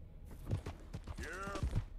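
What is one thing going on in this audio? A horse's hooves thud on a dirt path.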